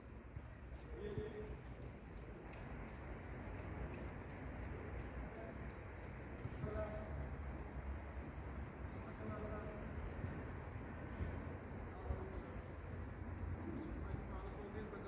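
Men's voices call out faintly in the distance.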